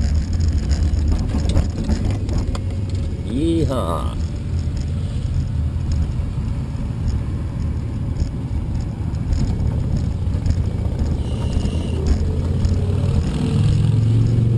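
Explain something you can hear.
Bicycle tyres roll and rattle over a paved path.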